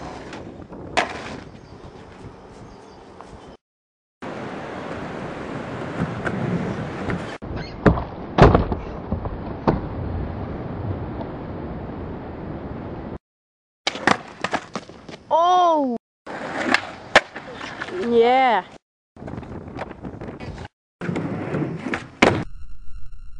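A skateboard's tail snaps down and the board lands with a clack.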